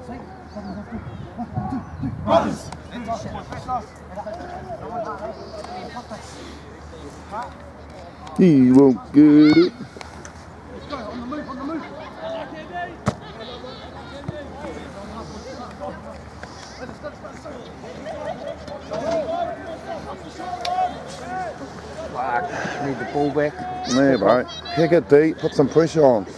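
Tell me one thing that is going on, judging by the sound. Several men chat and call out outdoors.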